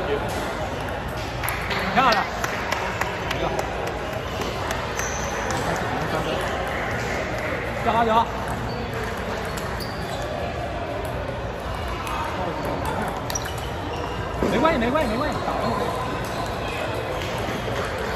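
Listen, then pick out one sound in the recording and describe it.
Table tennis balls click sharply against paddles and tables.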